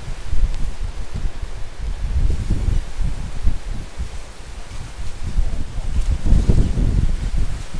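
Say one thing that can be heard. Palm fronds rustle and thrash in the wind.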